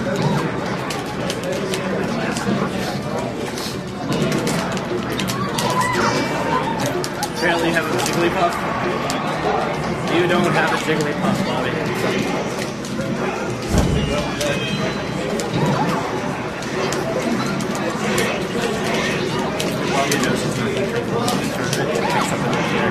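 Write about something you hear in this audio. Video game fight sounds play through a television speaker.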